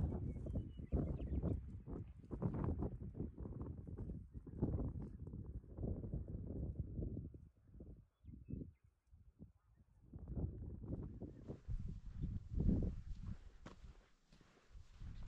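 Wind buffets and rumbles in gusts outdoors.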